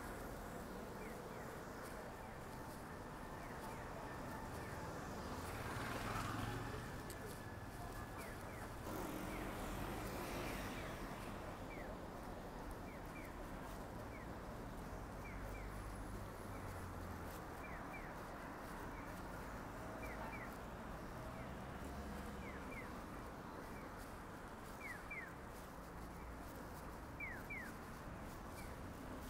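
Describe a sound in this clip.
A pedestrian crossing signal chirps over and over.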